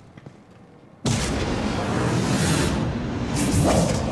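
A crackling energy blast roars loudly.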